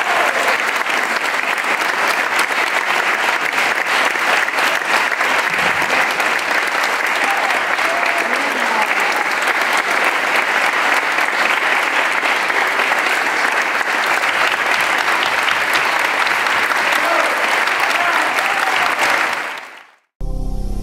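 A large audience applauds loudly and steadily.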